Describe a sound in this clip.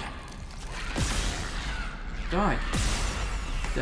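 A gun fires loud energy shots.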